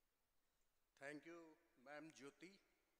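A man speaks through a microphone and loudspeakers.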